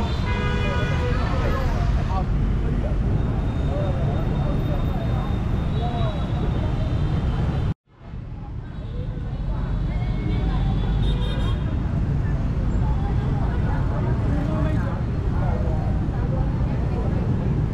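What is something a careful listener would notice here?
Motorbike engines rumble and hum in busy street traffic.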